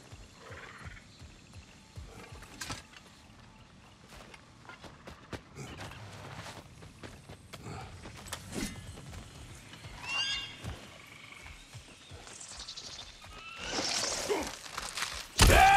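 Footsteps crunch and squelch on wet ground.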